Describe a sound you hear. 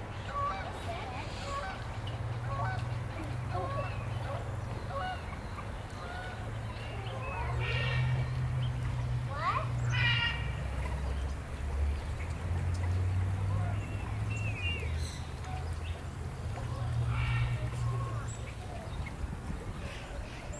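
Birds chirp and call.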